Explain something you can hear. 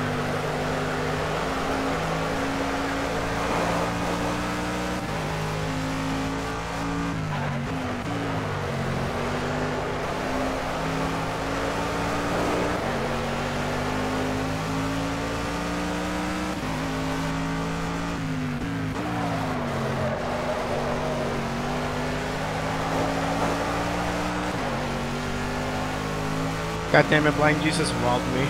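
A racing car engine roars steadily, shifting gears up and down as it speeds along.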